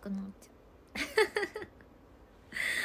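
A young woman laughs brightly.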